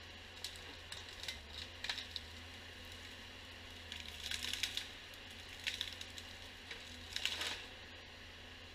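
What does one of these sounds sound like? Branches crack and snap as a felled tree is dragged through the brush.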